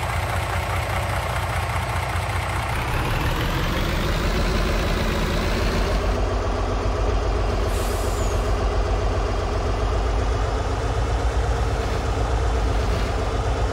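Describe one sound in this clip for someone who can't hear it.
A truck's diesel engine rumbles steadily as it drives.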